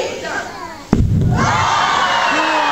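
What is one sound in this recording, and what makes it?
A loud bang bursts out with a rushing whoosh.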